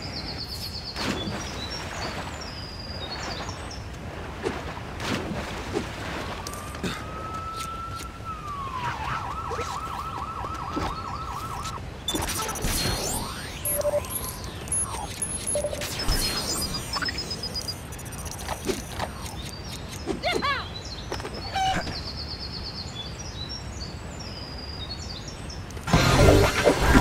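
Game sound effects chime and beep.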